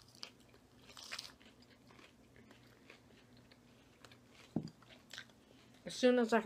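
A woman chews crunchy salad close to a microphone.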